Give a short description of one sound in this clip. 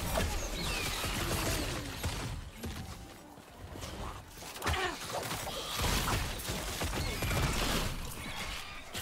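Fiery spells burst and roar in quick blasts.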